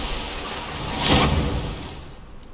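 A loud energy blast crashes and roars.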